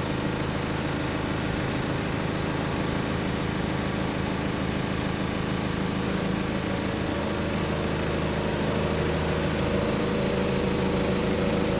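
A large truck's diesel engine idles nearby with a steady, deep rumble.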